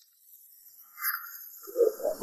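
Pages of a magazine rustle.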